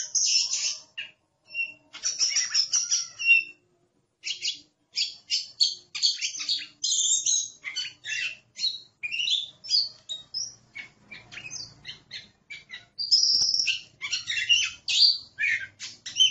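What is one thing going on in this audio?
A songbird sings a loud, varied song of quick whistles and chirps close by.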